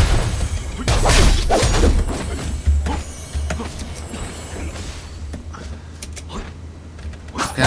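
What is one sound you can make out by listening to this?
Game combat effects whoosh and thud in quick bursts.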